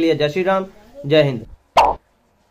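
A young man speaks close to the microphone with animation.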